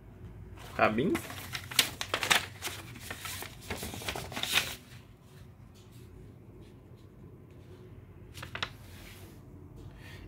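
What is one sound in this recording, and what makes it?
Paper pages flip and rustle.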